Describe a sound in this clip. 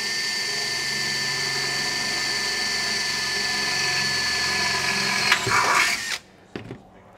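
A cordless drill whirs steadily, then winds down.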